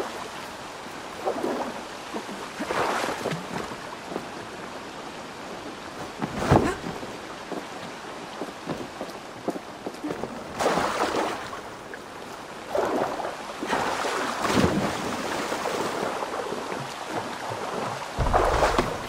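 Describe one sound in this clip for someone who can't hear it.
Rain falls steadily on water.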